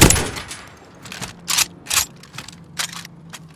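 A rifle's magazine clicks and clacks during a reload.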